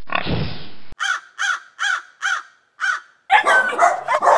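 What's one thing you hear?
A crow caws repeatedly.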